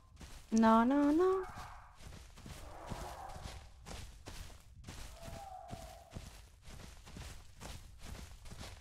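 A large dinosaur's heavy footsteps thud on grass as it runs.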